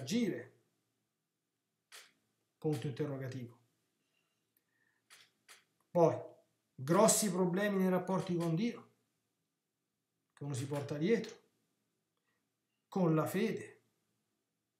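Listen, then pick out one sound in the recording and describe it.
A middle-aged man speaks calmly into a close microphone, pausing between phrases.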